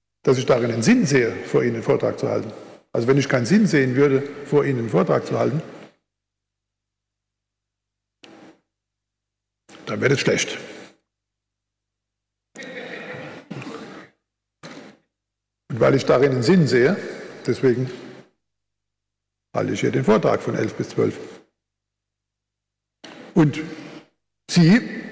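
An older man speaks calmly into a microphone, heard over loudspeakers, with pauses between phrases.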